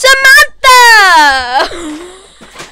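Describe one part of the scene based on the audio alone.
A young girl screams loudly and shrilly into a microphone, close by.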